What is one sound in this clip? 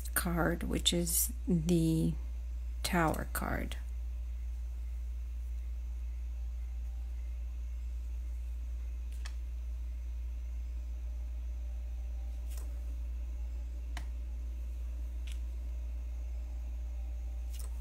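A brush dabs softly on paper.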